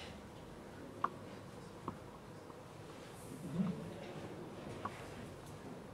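A small figure knocks lightly as it is handled.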